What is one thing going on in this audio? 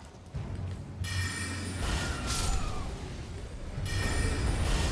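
Weapons strike in a fight.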